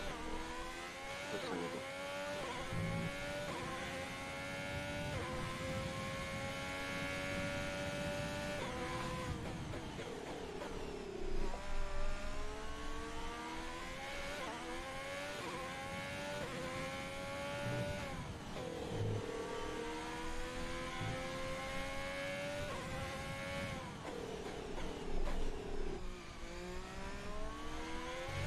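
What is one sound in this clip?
A racing car engine screams at high revs, rising in pitch and dropping sharply at each gear change.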